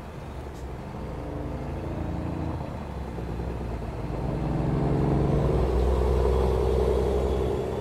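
A second truck roars past, growing louder.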